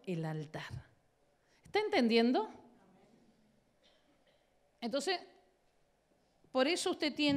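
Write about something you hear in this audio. A middle-aged woman speaks with animation into a microphone, in a large echoing room.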